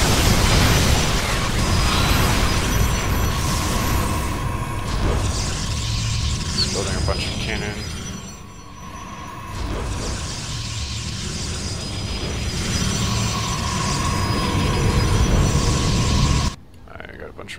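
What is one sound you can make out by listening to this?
Sci-fi game units warp in with humming, chiming effects.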